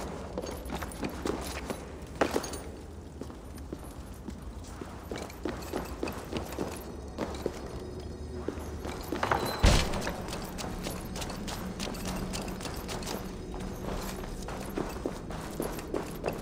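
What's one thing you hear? Footsteps tap and scuff on stone floors.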